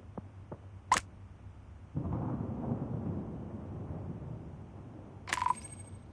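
A knife slashes with a sharp whoosh.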